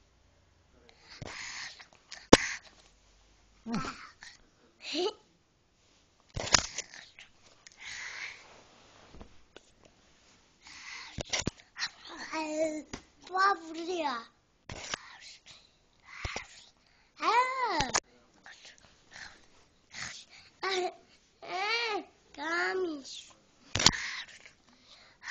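A young boy talks and calls out playfully, close up.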